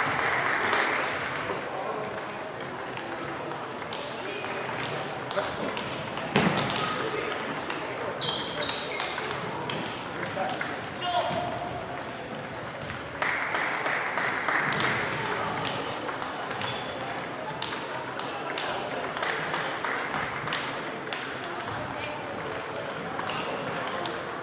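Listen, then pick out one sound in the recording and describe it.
Table tennis balls click on paddles and tables throughout a large echoing hall.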